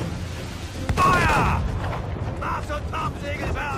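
Cannons boom in a heavy volley.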